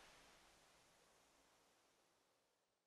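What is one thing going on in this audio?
A waterfall roars and splashes.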